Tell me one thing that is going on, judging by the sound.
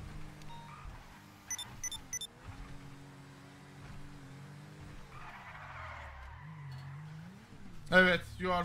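A car engine hums and revs as a vehicle drives.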